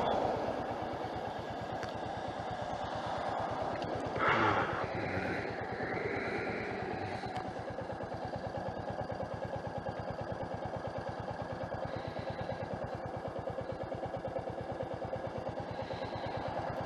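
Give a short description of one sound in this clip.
A motorcycle engine idles with a steady, rapid thumping.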